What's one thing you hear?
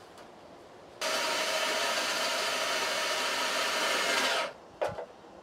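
An electric drill whirs steadily as it bores through metal.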